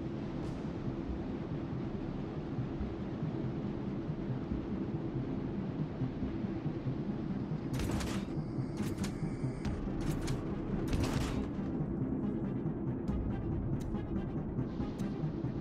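Water rushes and churns along a ship's hull.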